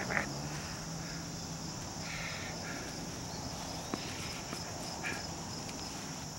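A puppy yips in short, high bursts.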